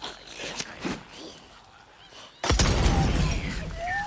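A firebomb bursts into flames with a loud whoosh.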